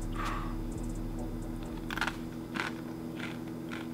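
A young man crunches on a chip.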